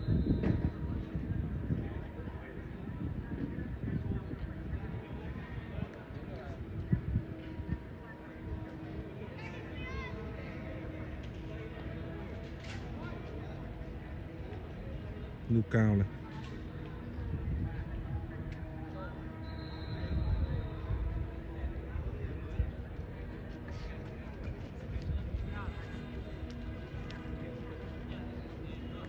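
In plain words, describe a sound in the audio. Footsteps tread softly on grass outdoors.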